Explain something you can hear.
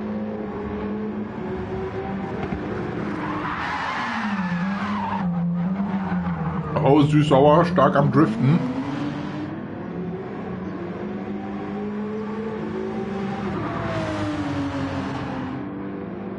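A racing car engine roars, its pitch rising and falling through the gear changes.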